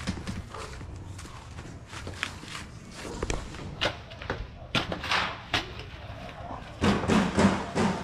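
A shovel scrapes and digs into wet soil.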